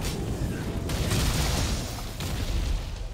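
A fiery blast explodes with a roar.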